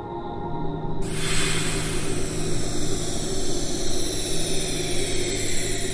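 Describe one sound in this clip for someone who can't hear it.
A magical energy burst swells into a loud, steady whooshing roar.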